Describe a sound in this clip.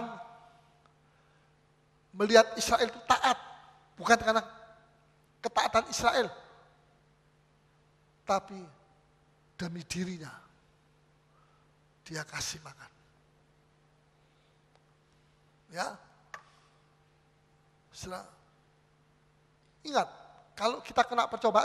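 An older man preaches with animation through a microphone, in bursts with pauses.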